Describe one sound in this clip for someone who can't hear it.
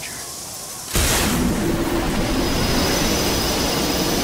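Wind rushes loudly past a falling figure.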